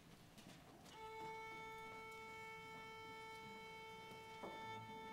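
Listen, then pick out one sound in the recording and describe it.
An orchestra sounds a long, steady tuning note in a large hall.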